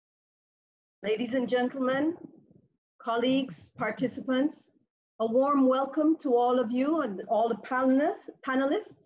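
A woman speaks calmly and clearly through an online call.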